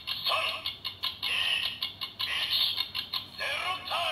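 A plastic button clicks as it is pressed.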